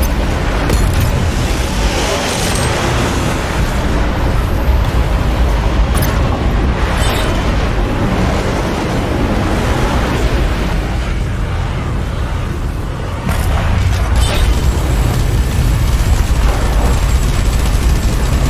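Explosions boom and rumble.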